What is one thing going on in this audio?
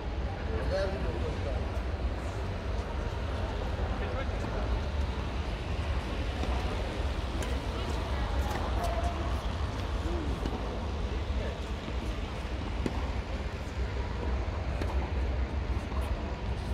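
Men's voices echo faintly in a large hall.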